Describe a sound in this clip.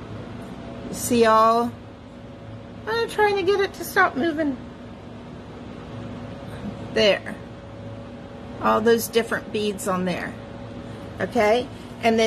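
An elderly woman talks calmly close by, in short bursts.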